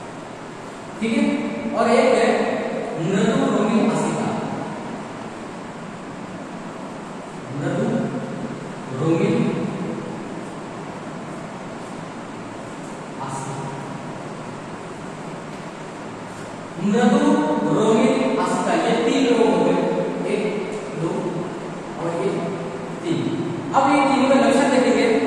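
A young man speaks calmly, as if teaching.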